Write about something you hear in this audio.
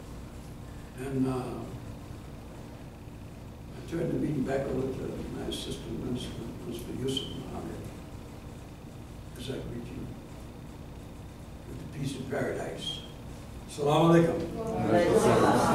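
An elderly man speaks slowly through a microphone, with long pauses.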